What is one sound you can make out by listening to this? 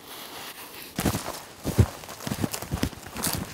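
Footsteps crunch through dry brush.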